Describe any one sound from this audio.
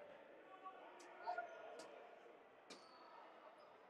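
A ball smacks against the floor a few times.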